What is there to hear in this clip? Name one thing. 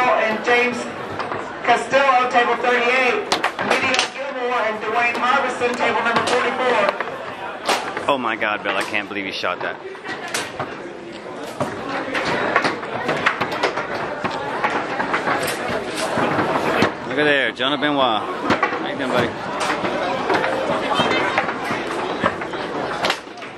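A foosball ball clacks sharply against plastic figures and the table walls.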